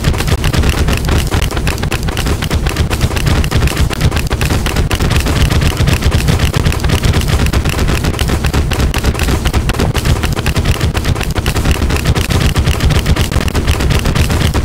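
Video game magic shots fire in a rapid stream and strike an enemy.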